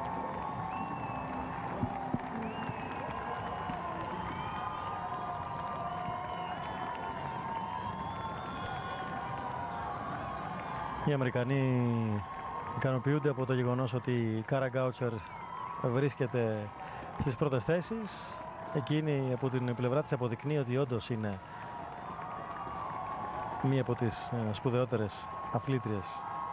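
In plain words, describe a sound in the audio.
A crowd murmurs and cheers outdoors.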